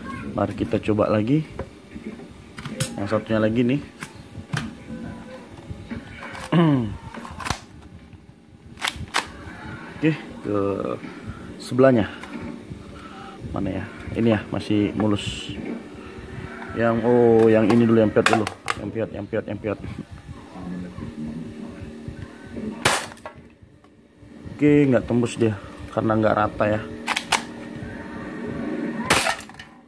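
Plastic toy pistols click and clack as they are handled.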